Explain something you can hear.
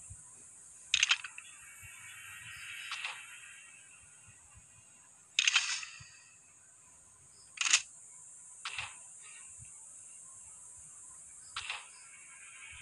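Short interface chimes sound as menu buttons are pressed.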